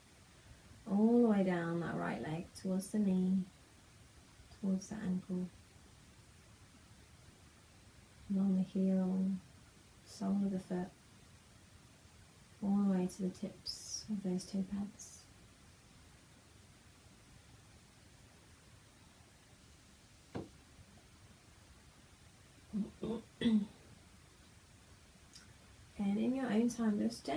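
A young woman speaks slowly and calmly, with long pauses, close by.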